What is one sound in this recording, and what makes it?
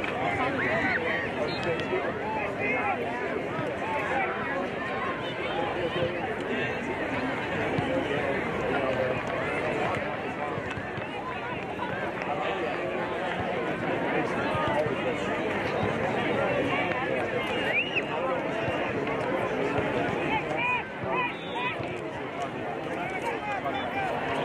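Many children chatter and shout at a distance outdoors.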